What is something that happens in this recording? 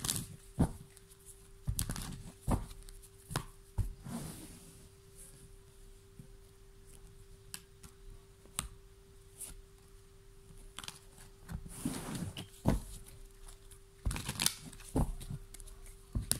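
Playing cards tap and slap down onto a soft surface.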